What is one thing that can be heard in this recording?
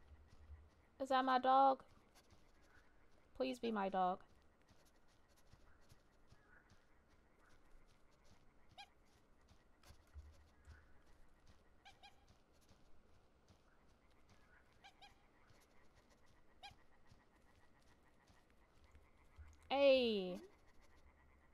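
A young woman speaks briefly and with animation through a microphone.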